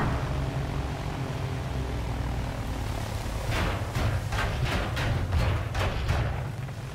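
An airship's engines drone low and steady.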